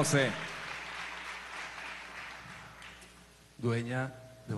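An audience applauds in a large hall and the applause fades away.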